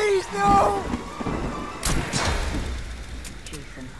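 A heavy blade strikes with loud thuds.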